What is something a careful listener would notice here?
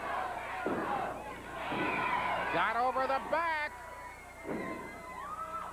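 A body thuds hard onto a wrestling mat.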